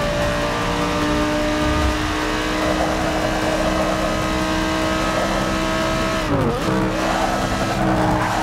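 A racing car engine roars steadily at high revs.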